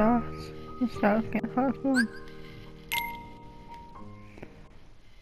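Short electronic menu chimes ring out.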